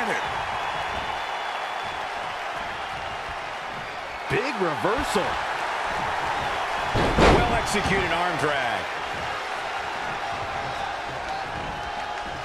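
A large arena crowd roars.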